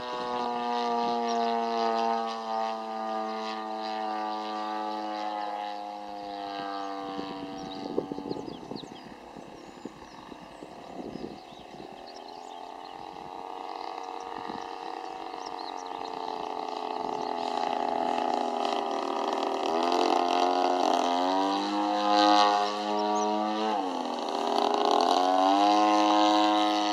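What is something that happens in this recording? A model airplane's engine whines overhead, its pitch falling and rising as it flies by.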